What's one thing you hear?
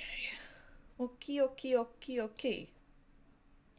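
A woman laughs close to a microphone.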